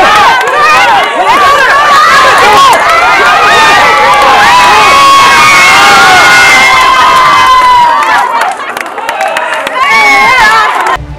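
A crowd of men and women cheers and shouts loudly outdoors.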